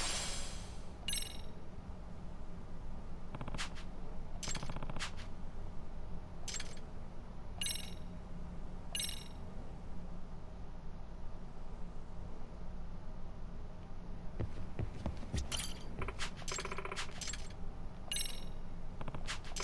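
Short electronic chimes ring out now and then.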